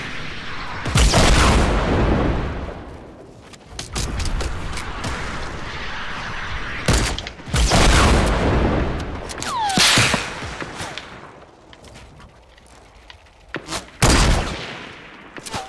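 A sniper rifle fires a loud shot that echoes away.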